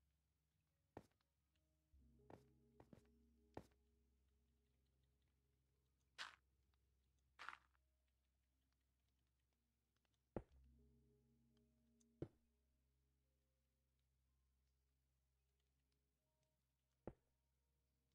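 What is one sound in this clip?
Blocks are placed with short, soft thuds.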